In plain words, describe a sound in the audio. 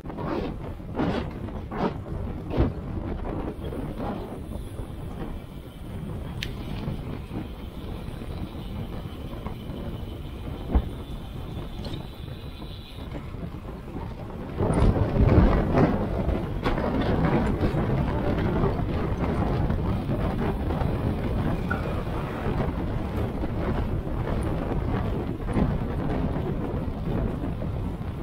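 Wind rushes past loudly while riding a bicycle outdoors.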